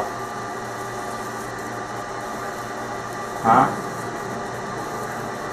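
A laser engraver hums steadily as it burns into metal.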